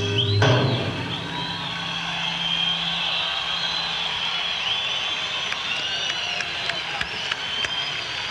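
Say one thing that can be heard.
Whistles shrill from a large crowd.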